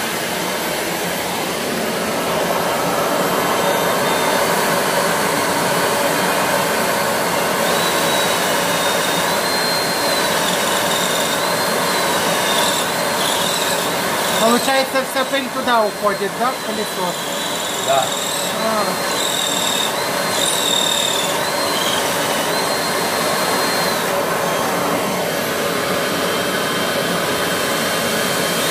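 A vacuum cleaner runs with a steady roar.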